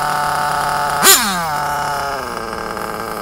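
A small nitro engine revs sharply once and then winds down.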